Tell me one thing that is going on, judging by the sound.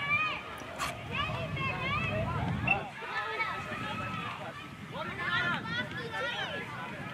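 Children shout and call to each other in the distance.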